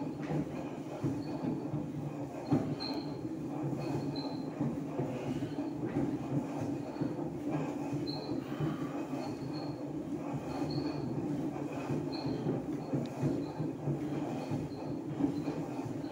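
A man breathes heavily with effort.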